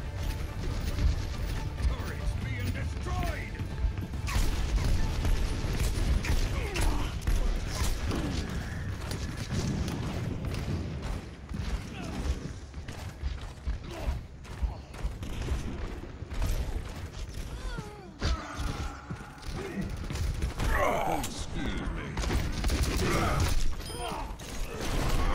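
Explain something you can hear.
Gunshots and impacts crackle against an energy barrier.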